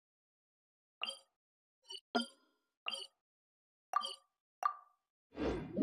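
Soft game interface chimes click as menu options are selected.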